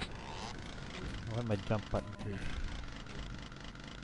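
A chainsaw revs and buzzes.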